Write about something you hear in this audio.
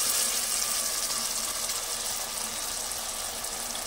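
A thick sauce plops into a pot.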